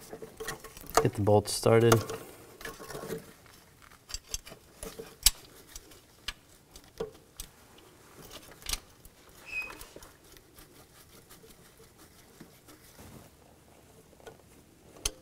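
Plastic engine parts click and knock as they are handled.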